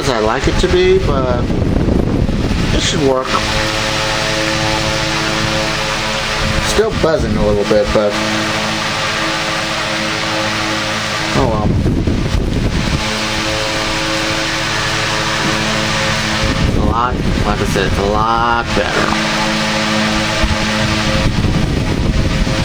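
An electric fan hums and whirs steadily.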